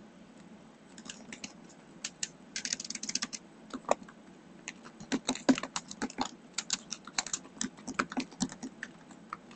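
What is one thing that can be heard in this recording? Keys on a keyboard click in quick bursts of typing.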